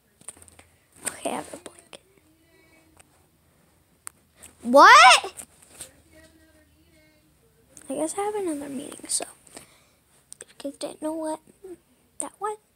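A young girl talks close by, in short bursts.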